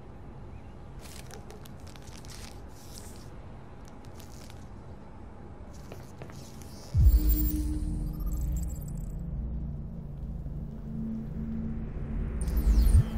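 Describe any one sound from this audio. A small plastic bag crinkles in a hand.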